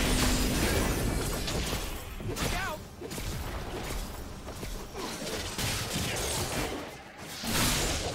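Magic spells whoosh and crackle in a fast video game battle.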